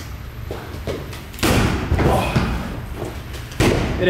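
A kick thuds against a heavy bag.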